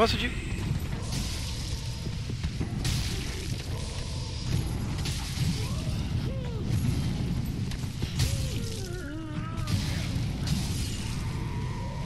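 Metal weapons clash and clang in a fight.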